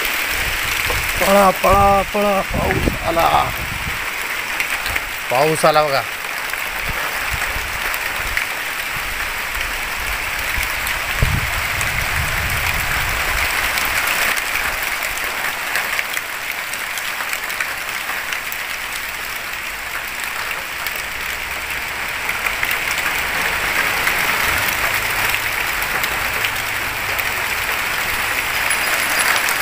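Steady rain pours down outdoors.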